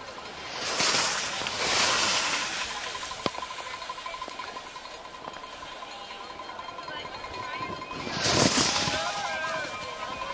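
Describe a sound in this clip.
Skis scrape and hiss over hard snow in quick turns.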